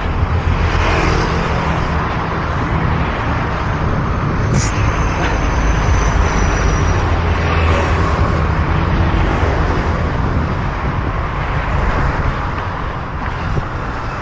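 Cars pass by on a nearby road.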